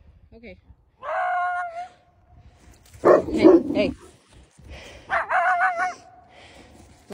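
A coyote howls.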